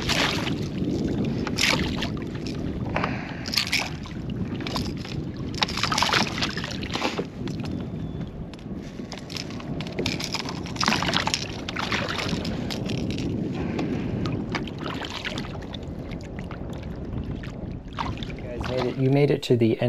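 Wind rushes and water laps outdoors.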